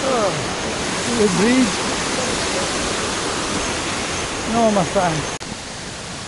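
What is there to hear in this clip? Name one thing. A stream rushes and splashes over rocks nearby.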